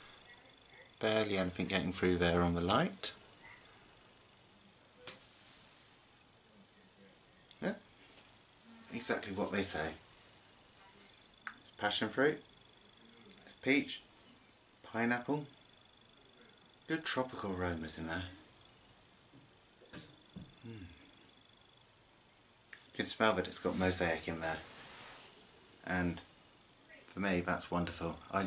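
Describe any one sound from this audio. A man talks calmly and close by, in short bursts with pauses.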